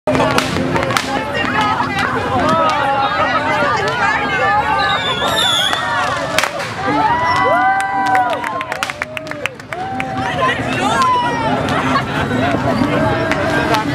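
Fireworks pop and crackle in the distance, outdoors.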